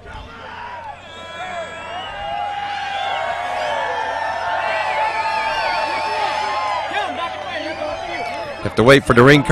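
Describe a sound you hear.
A crowd cheers and whistles in a large echoing hall.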